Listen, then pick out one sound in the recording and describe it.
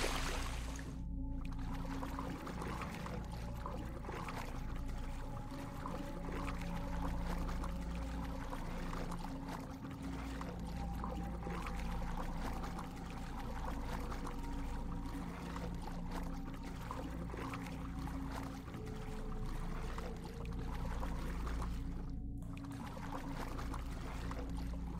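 Muffled water swirls steadily around a swimmer underwater.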